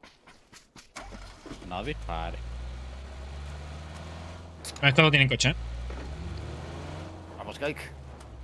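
A car engine starts and rumbles steadily.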